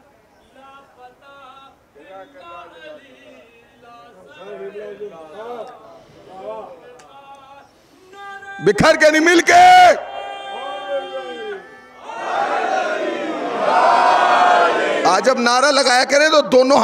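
A man speaks forcefully into a microphone outdoors, his voice rising to shouts.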